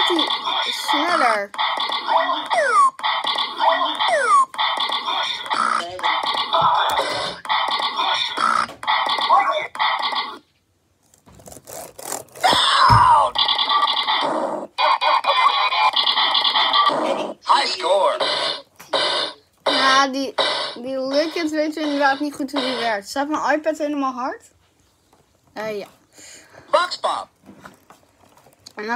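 A teenage boy sings close to a microphone, with animation and wavering pitch.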